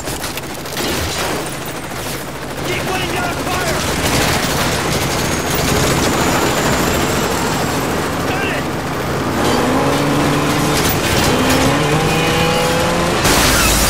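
A vehicle engine rumbles steadily.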